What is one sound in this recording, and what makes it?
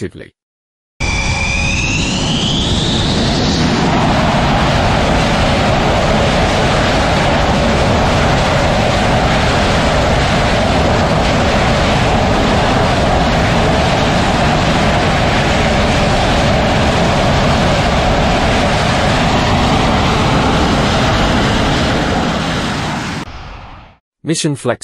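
A jet engine roars loudly and steadily, then fades.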